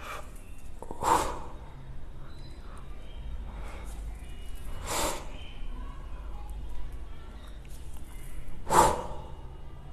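Dumbbells clink together.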